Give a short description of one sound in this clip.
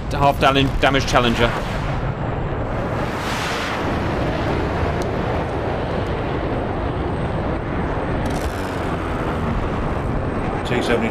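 Fires roar with a steady low rumble.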